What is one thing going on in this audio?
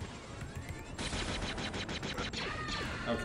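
A laser gun fires a rapid burst of shots.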